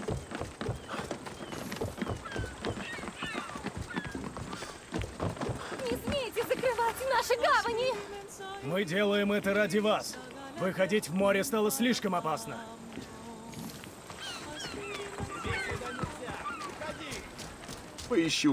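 Footsteps run over wooden boards and sand.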